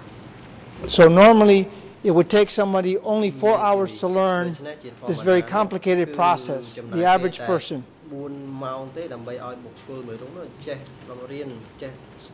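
A middle-aged man speaks calmly and with emphasis into a microphone.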